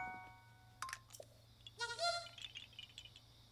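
A short electronic jingle chimes.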